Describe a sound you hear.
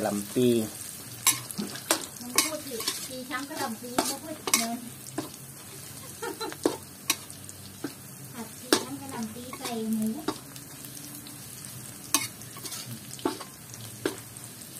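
A metal spatula scrapes and clinks against a metal wok.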